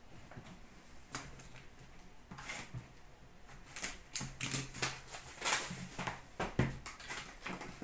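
Cardboard packaging rustles and scrapes as hands handle a box.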